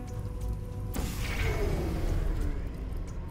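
A futuristic gun fires with a sharp whooshing burst.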